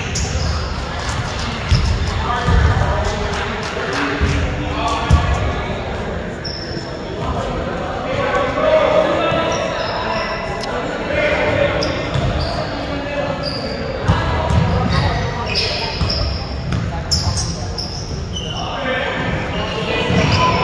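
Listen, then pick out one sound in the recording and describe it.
A basketball bounces on the hard floor.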